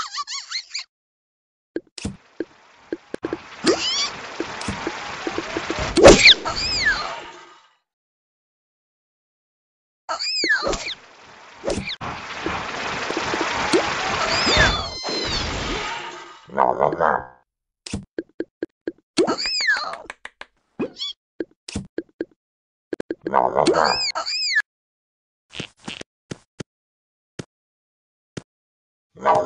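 Short game chimes and pops sound now and then.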